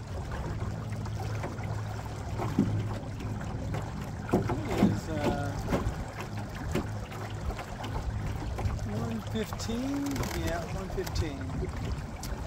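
Water laps and splashes against a boat's hull.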